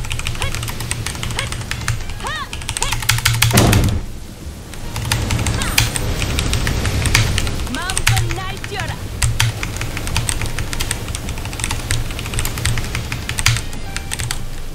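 Rapid electronic blasts and zaps crackle from a video game.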